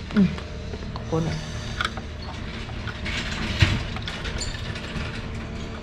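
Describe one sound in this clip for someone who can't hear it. A plastic engine cover knocks and rattles as it is lifted.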